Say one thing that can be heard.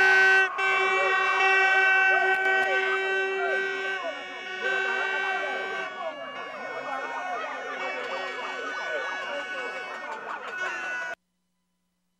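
A crowd of men and women talks and calls out loudly close by, outdoors.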